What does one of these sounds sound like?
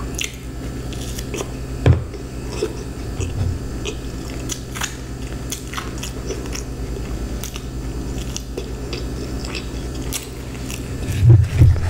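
A woman chews food close to a microphone with soft wet crunching sounds.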